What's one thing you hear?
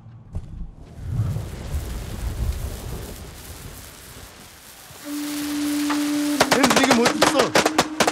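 A firecracker fuse hisses and sputters.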